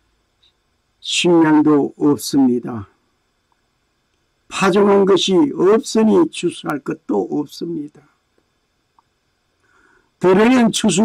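An elderly man speaks calmly and clearly into a microphone, in short phrases with pauses.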